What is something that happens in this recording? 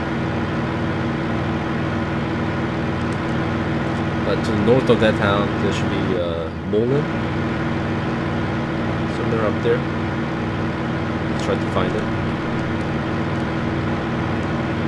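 A propeller aircraft engine drones steadily.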